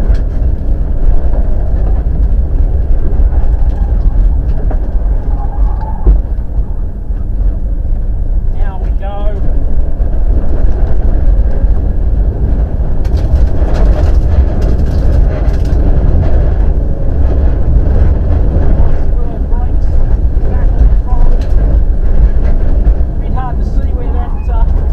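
A car engine roars loudly from inside the cabin, revving up and down.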